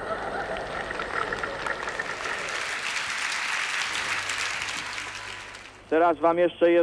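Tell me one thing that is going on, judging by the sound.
A large crowd applauds and cheers in a big echoing hall.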